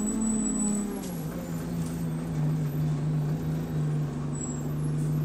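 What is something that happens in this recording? A bus engine hums steadily and drops in pitch as the bus moves.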